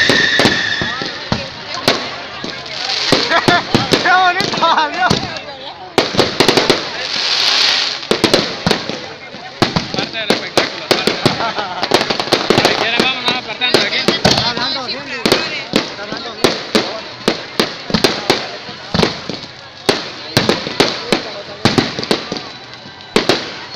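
Firecrackers bang and crackle in rapid bursts, close by and echoing.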